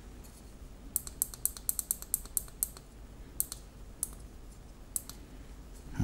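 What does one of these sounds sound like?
Fingers press buttons on a small device with quick, sharp clicks.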